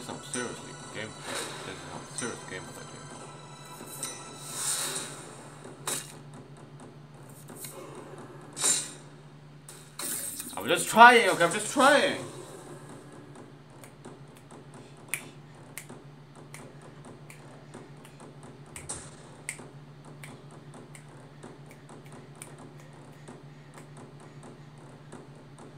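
Soft clicks and card swishes sound from a card game.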